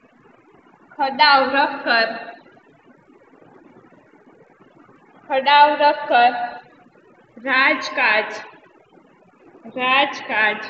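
A woman speaks calmly and clearly, in pauses.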